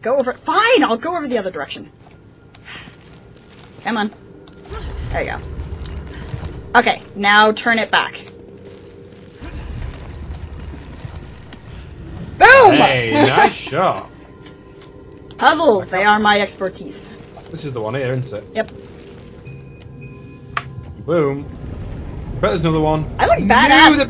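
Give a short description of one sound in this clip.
A young woman talks and laughs with animation into a close microphone.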